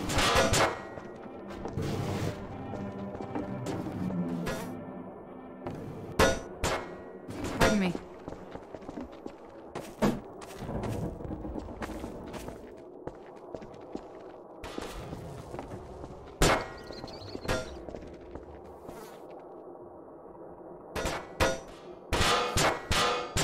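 Hollow metal objects clank and thud as they knock together.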